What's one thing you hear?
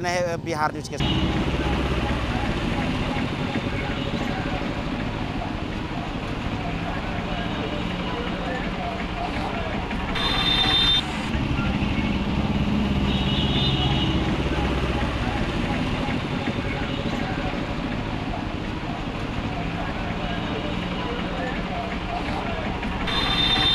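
Water splashes under motorcycle wheels.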